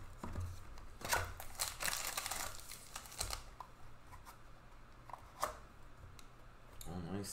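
A foil pack crinkles and rustles as hands handle it.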